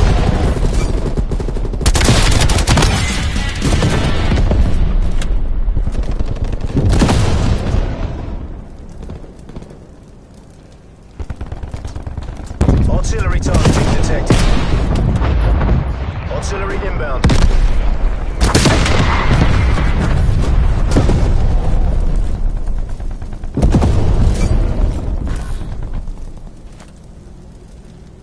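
Gunshots crack and boom in rapid bursts.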